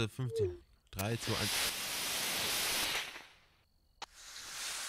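A rocket engine roars loudly at launch.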